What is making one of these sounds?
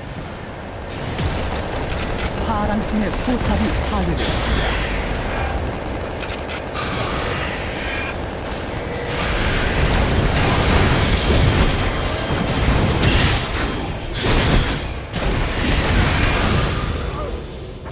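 Magic spells crackle and burst in a game fight.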